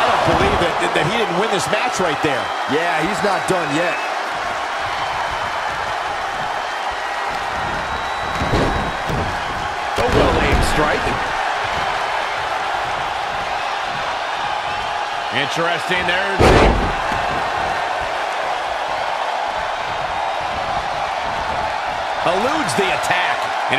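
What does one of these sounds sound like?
A large crowd cheers steadily.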